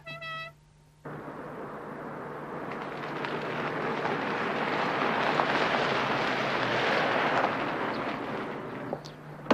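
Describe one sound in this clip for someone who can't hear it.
A car approaches on a drive and rolls past.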